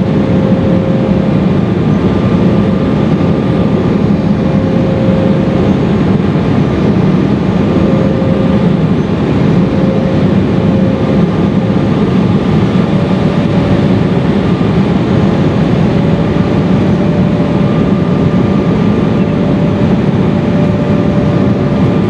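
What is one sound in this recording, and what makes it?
A steady engine whine hums beneath the roar.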